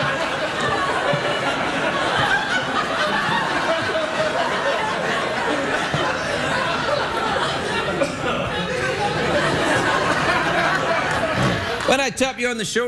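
A studio audience cheers and applauds loudly.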